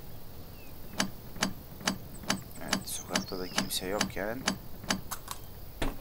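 A handheld power drill clicks and whirs in short, repeated bursts.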